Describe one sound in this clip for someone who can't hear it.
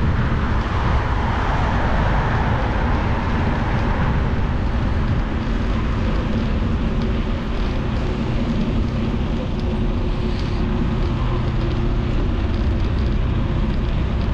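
A motorcycle engine hums steadily.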